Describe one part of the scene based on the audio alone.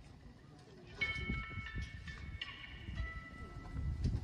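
A few bright, ringing notes play on a metal instrument.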